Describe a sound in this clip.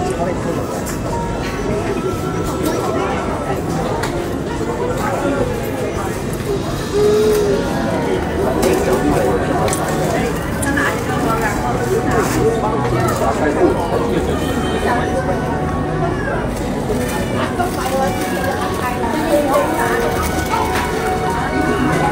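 Many voices chatter and murmur close by in a busy, crowded room.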